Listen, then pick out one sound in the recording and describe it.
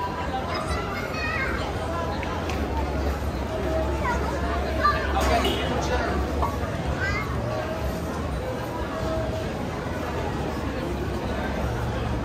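Footsteps shuffle on a hard floor nearby.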